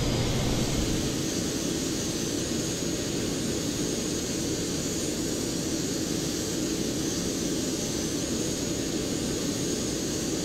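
A parked jet's engine whines steadily outdoors.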